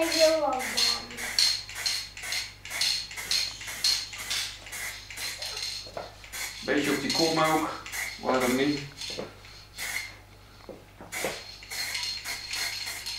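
A spray bottle hisses in repeated short bursts.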